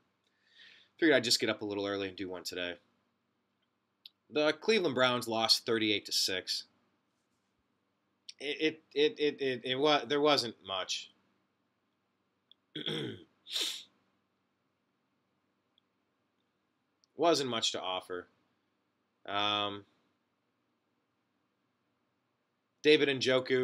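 A young man talks calmly into a nearby microphone, in short bursts with pauses.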